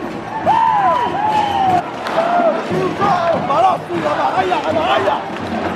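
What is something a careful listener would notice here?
A large crowd sings and chants in an open stadium.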